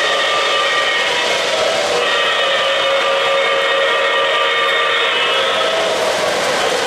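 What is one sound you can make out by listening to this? A model steam locomotive's electronic whistle blows.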